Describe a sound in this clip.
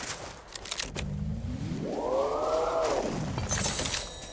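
A car engine revs up and then dies down.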